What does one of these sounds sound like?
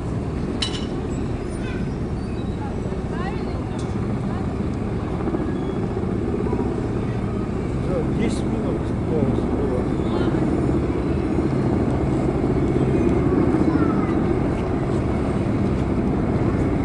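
Aircraft engines drone overhead in a low, steady roar that slowly grows louder.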